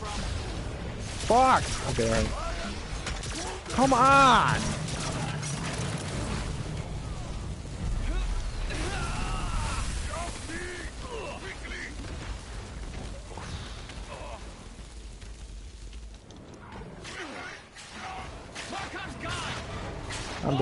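Explosions boom and crackle with fire.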